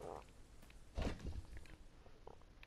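A soft game menu whoosh sounds as a map opens.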